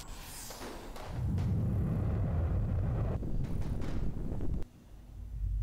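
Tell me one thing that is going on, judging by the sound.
Rocket engines roar.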